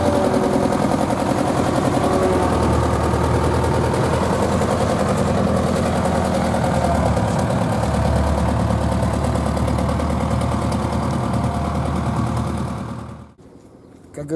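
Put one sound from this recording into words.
A heavy road roller engine rumbles steadily close by.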